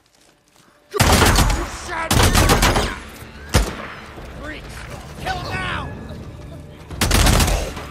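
A pistol fires loud shots close by.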